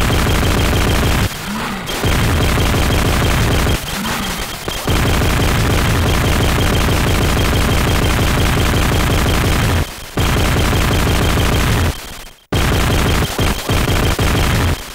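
Rapid electronic gunfire blasts from a video game.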